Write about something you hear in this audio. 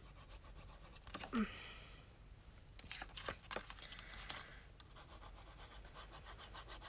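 Paper rustles and slides up close.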